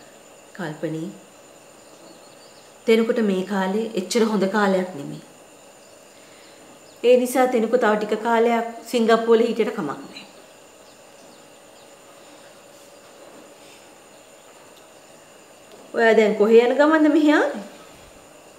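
A middle-aged woman speaks calmly and earnestly, close by.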